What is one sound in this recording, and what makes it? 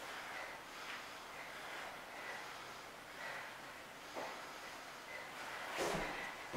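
Bodies shift and thump on a padded mat.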